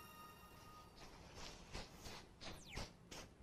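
Soft footsteps patter across the ground.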